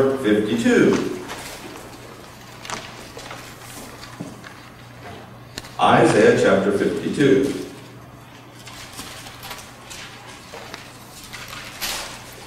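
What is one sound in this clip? Paper rustles as a man handles sheets.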